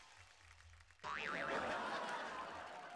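A man cries out in surprise.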